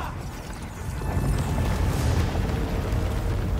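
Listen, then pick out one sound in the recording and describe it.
Debris crashes and rumbles deeply.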